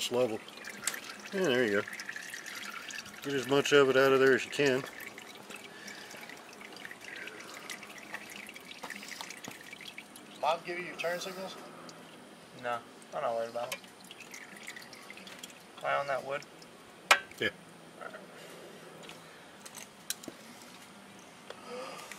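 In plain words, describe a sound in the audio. Oil drips steadily into a pan of oil.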